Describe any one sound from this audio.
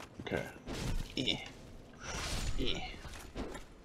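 A creature groans as it attacks.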